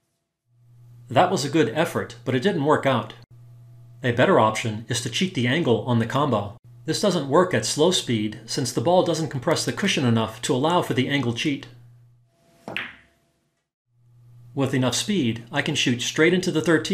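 A man talks calmly and steadily, close to a microphone.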